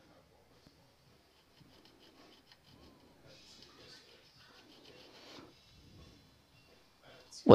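A small file rasps softly against a hard edge.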